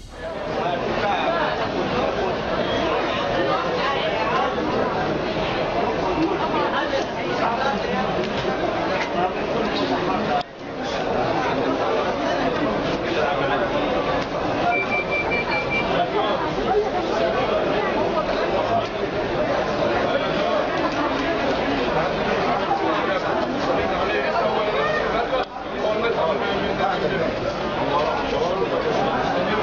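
A crowd of men and women chatters in a large, echoing hall.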